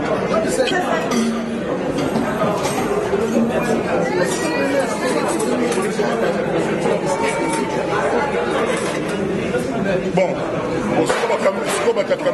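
Metal serving utensils clink against food trays.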